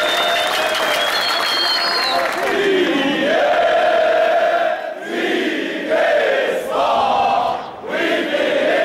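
A large crowd of men chants loudly in unison outdoors.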